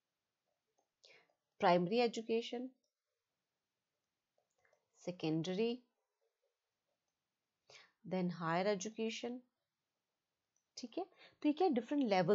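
A young woman speaks calmly into a close microphone, in short phrases with pauses.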